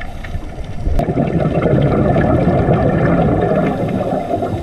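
Air bubbles from a diver's breathing gurgle and rumble underwater.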